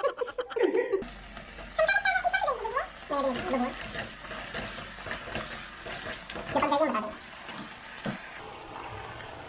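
Broth simmers and bubbles in a pan.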